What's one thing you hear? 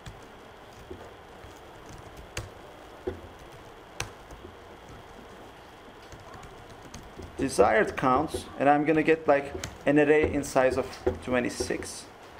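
Computer keys click as a man types.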